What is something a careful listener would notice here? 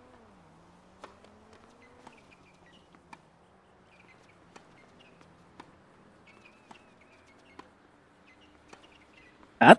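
A tennis ball is struck back and forth with rackets, with sharp knocks.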